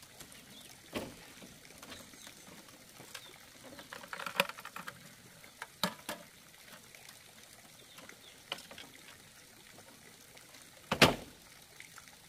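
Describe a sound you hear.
Wooden pieces knock and clatter now and then.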